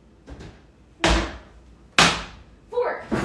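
A metal pan clatters onto a stovetop.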